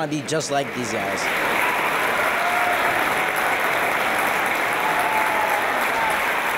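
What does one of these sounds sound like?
A crowd applauds loudly in a large echoing hall.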